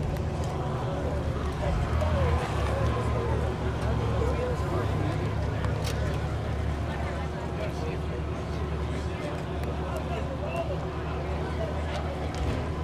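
A crowd chatters faintly in the distance.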